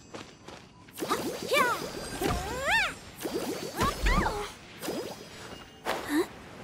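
Magical blasts crackle and zap in quick bursts.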